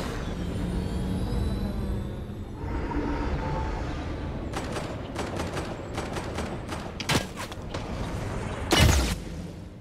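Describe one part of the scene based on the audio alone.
A spaceship engine hums and whirs as it hovers.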